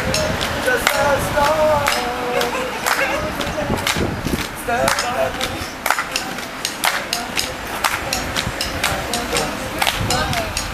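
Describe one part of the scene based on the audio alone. A young man sings outdoors while facing a group.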